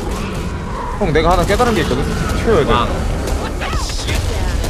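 A huge monster roars.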